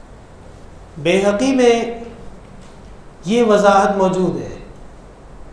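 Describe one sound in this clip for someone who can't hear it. A man speaks calmly into a close microphone, in drawn-out phrases.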